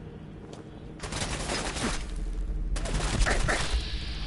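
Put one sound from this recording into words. A gun fires in loud bursts.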